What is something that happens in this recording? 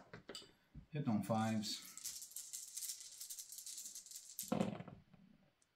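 Dice rattle and roll across a table.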